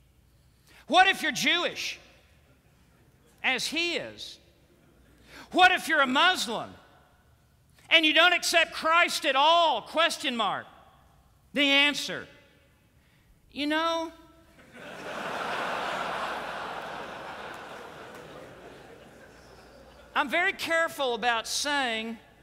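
A middle-aged man preaches with animation through a microphone in a large hall.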